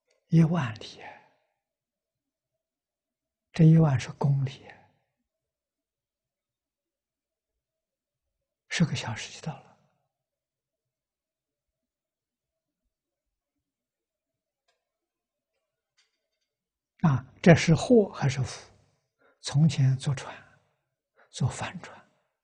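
An elderly man speaks calmly in short phrases with long pauses, close to a clip-on microphone.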